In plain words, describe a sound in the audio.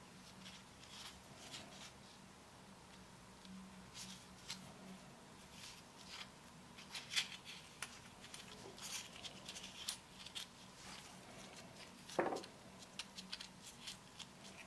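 Gloved fingers rustle and squeak against a small metal part.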